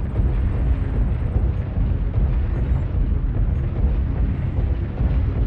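A heavy machine rumbles low and steadily, with deep thudding steps.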